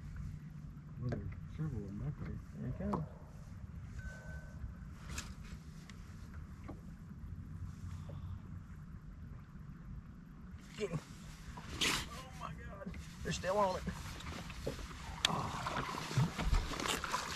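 Two men talk outdoors, close by.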